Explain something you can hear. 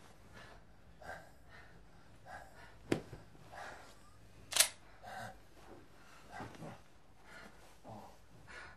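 A woman pants heavily close by.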